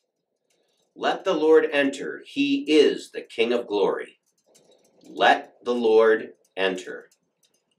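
A middle-aged man speaks calmly and clearly, close to a microphone.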